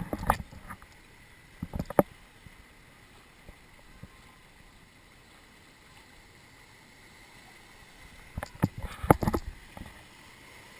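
Water splashes against the sides of a boat.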